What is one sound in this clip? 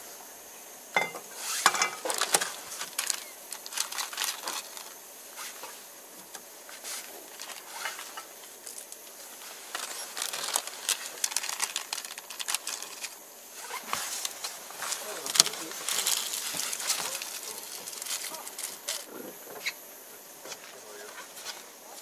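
Small utensils and containers clink and rattle.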